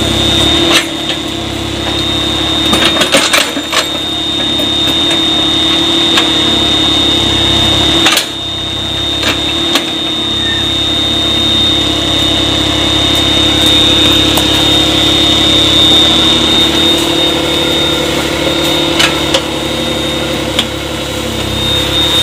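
An excavator engine drones steadily nearby.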